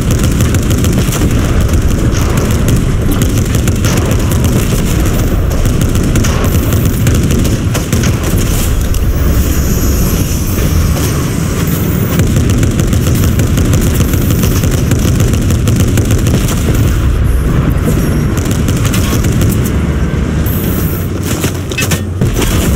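A tank cannon fires with loud blasts.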